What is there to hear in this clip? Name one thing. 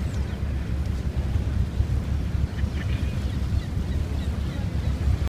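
A flag flaps in the wind.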